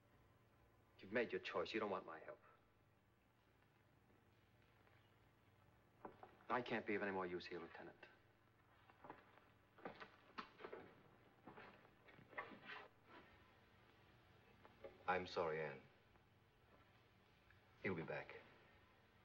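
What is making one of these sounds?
A man speaks calmly and gravely, close by.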